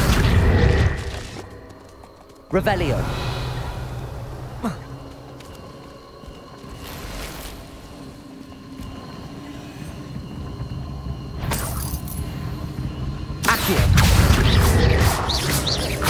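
A magic spell crackles and bursts with a whoosh.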